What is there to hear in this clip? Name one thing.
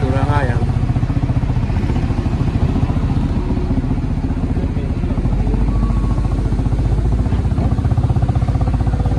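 A motorcycle engine throbs steadily up close.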